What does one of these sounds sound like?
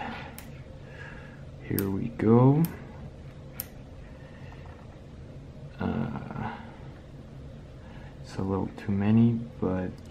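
Small metal magnet balls click together.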